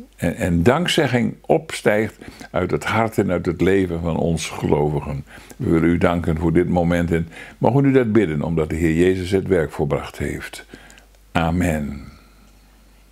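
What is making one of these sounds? An elderly man speaks calmly and thoughtfully, close to a microphone.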